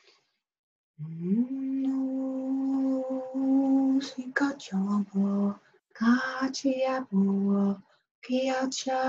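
A woman sings close by, holding long steady notes.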